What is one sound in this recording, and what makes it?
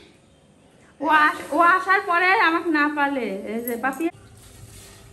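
A young woman talks with animation nearby.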